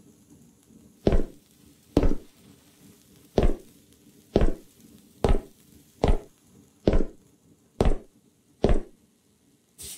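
Heavy footsteps thud slowly on a wooden floor.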